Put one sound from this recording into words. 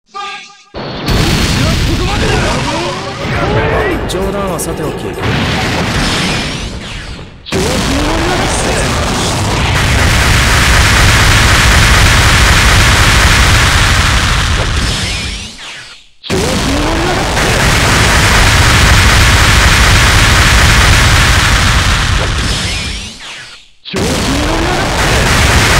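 Fire roars and crackles in loud bursts.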